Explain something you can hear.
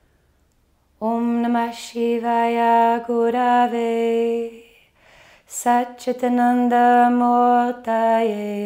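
A young woman sings a calm, gentle melody close by.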